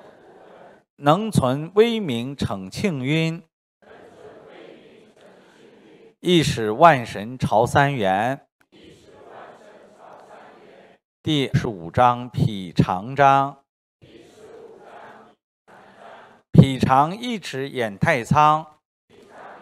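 A middle-aged man reads out in short bursts through a microphone.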